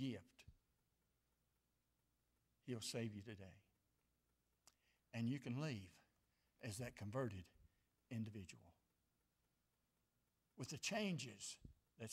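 A middle-aged man preaches through a microphone in measured phrases with pauses.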